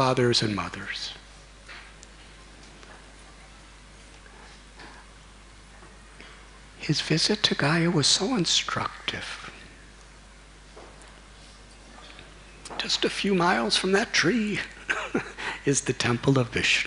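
A middle-aged man speaks with animation into a microphone, with pauses between phrases.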